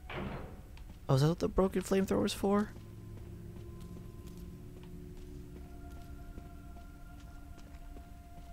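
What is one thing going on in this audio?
Footsteps fall on rocky ground.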